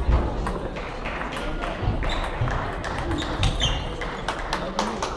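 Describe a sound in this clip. A crowd murmurs in the background of a large echoing hall.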